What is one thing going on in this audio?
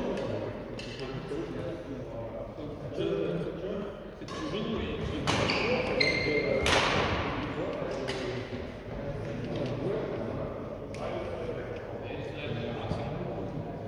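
Shuttlecocks are struck with sharp taps of badminton rackets in a large echoing hall.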